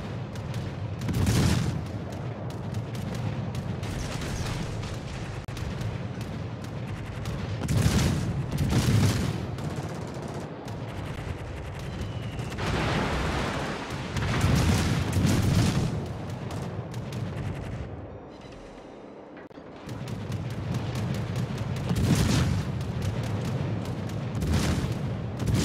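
Heavy naval guns fire in loud, booming salvos.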